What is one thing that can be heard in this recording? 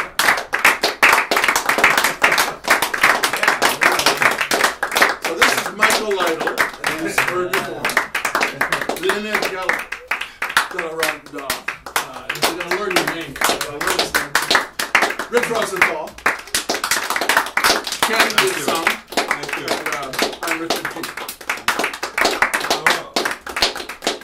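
Hands clap rapidly and steadily.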